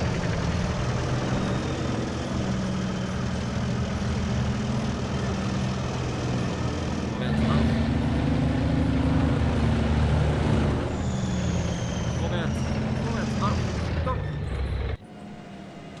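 Tank tracks clank and squeal on the road.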